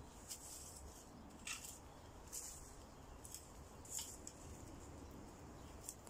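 A garden fork scrapes and crunches into soil and dry leaves.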